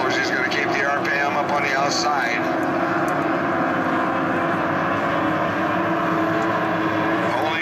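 A racing powerboat engine roars loudly as the boat speeds across the water.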